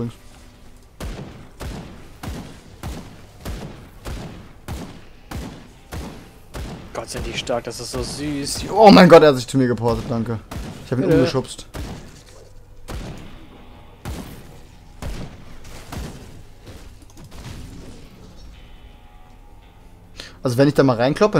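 Magic blasts burst with sharp impacts.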